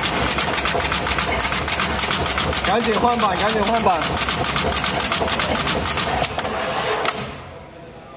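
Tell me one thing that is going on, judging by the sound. A component insertion machine clicks and clatters rapidly.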